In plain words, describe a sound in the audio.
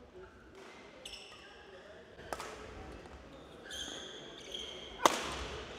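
Sneakers squeak sharply on a court floor.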